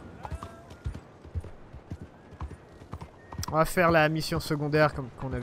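Horse hooves clop at a steady walk.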